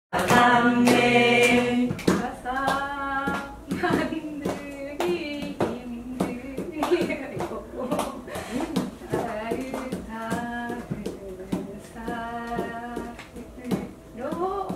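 Several people clap their hands in a steady rhythm.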